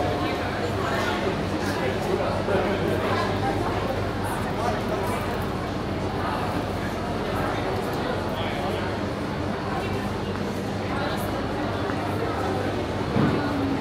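Footsteps shuffle on a hard floor.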